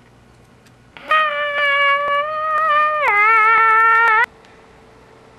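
A young man hums a long, loud, wavering tune close by.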